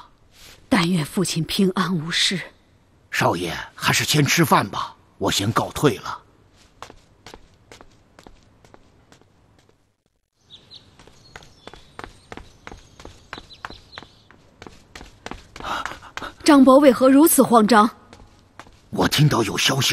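A young man speaks politely.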